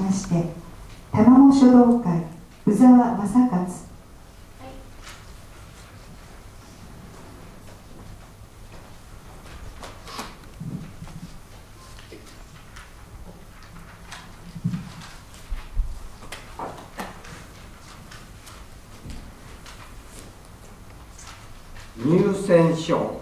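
An elderly man speaks slowly into a microphone, heard through loudspeakers in a large room, with long pauses.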